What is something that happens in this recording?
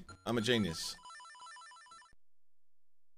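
A retro video game plays quick electronic beeps.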